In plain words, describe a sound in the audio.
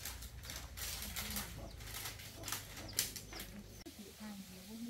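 Plastic crinkles and rustles close by.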